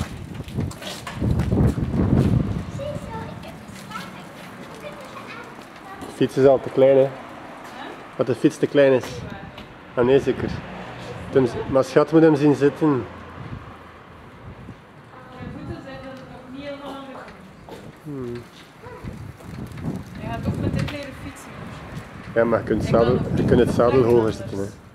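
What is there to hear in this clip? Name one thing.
A bicycle rolls over concrete with a soft tyre hiss.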